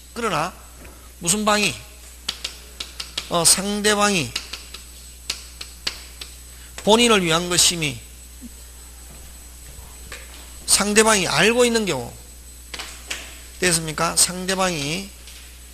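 A man lectures with animation through a microphone, in short bursts with pauses.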